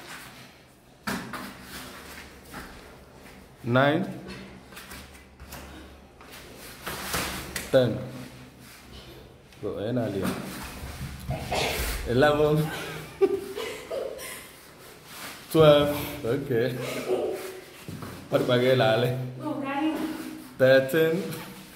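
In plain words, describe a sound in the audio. Bodies thump and scuffle on foam mats.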